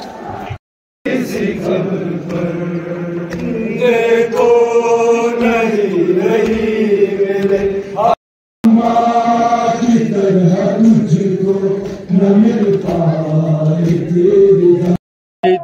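A large crowd chants loudly in unison.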